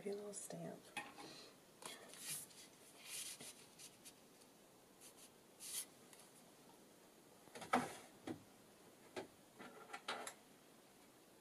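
Paper rustles and taps as hands handle a card.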